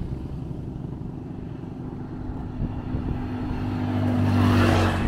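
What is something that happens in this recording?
A motorbike engine hums as the motorbike approaches.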